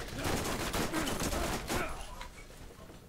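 Rapid gunfire blasts close by.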